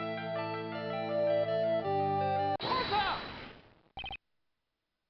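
Game music plays with a steady tune and then fades out.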